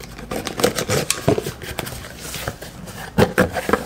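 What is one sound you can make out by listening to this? A box cutter slices through packing tape.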